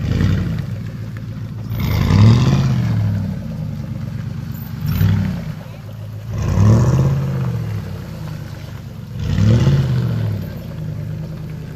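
A pickup truck engine revs hard in repeated bursts.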